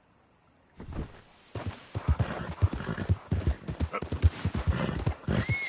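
A horse's hooves thud in a quick, steady rhythm on soft ground.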